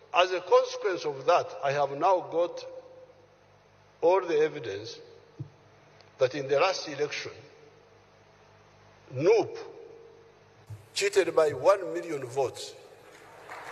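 An elderly man speaks into a microphone in short bursts, with pauses.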